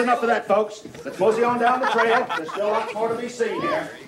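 A crowd of children and adults chatters in a room.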